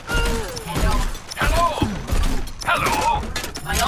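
A game gun fires in loud bursts.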